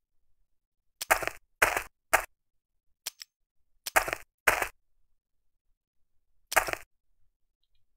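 Short game sound effects burst out several times.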